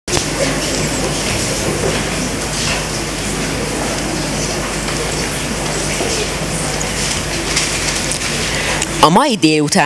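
A teenage boy reads aloud through a microphone in a hall.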